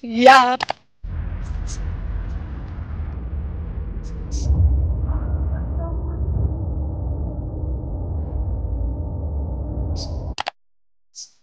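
A car engine rumbles steadily while driving.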